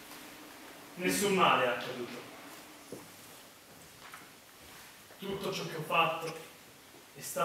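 A young woman speaks clearly in a theatrical manner.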